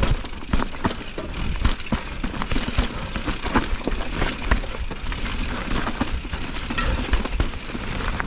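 A bicycle frame rattles and clunks over bumps.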